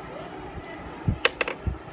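A plastic computer part clicks and knocks as hands handle it.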